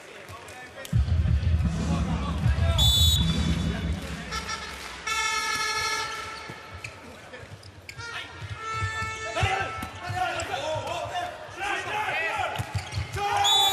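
A large crowd cheers loudly in an echoing hall.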